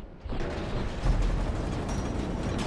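A heavy explosion booms.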